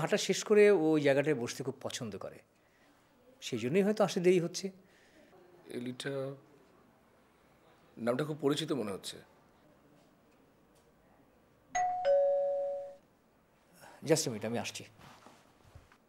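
A middle-aged man speaks calmly and seriously nearby.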